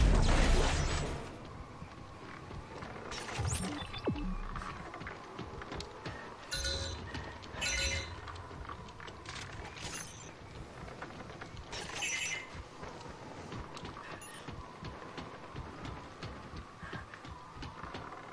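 Heavy boots clank on a metal walkway.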